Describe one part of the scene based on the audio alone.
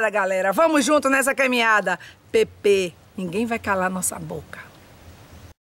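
A middle-aged woman speaks animatedly and close up.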